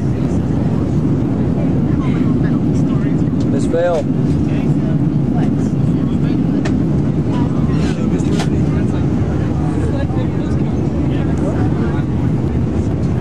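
A steady low roar of jet engines fills the cabin.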